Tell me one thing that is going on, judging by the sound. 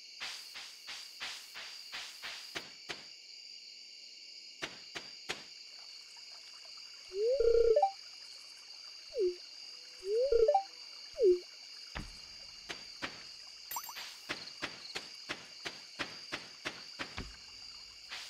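Footsteps patter quickly on a path.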